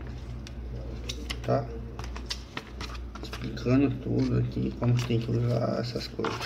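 A paper leaflet rustles as it is unfolded and flipped by hand.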